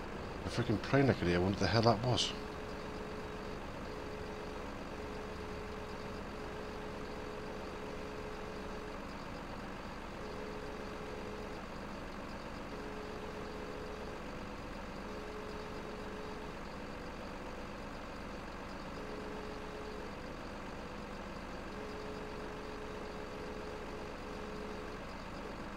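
A heavy machine's engine hums steadily.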